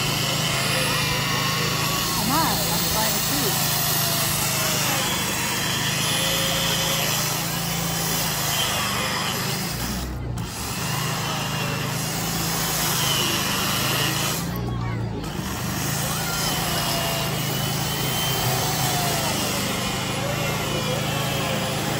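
A large outdoor crowd chatters and murmurs steadily all around.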